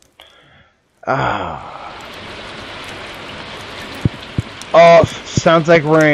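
A fire crackles softly in a hearth.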